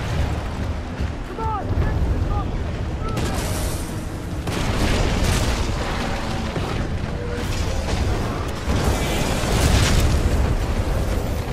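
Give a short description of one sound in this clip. Heavy mechanical footsteps thud steadily.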